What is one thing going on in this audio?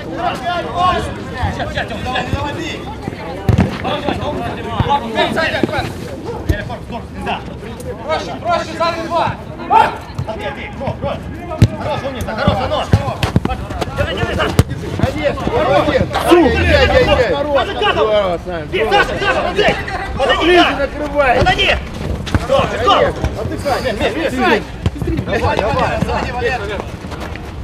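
Men shout and call out to each other across an outdoor pitch.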